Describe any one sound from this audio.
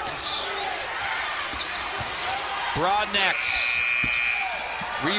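A basketball thumps on the floor as it is dribbled.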